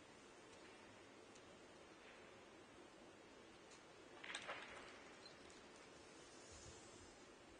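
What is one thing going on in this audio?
A cue strikes a snooker ball and the balls click together.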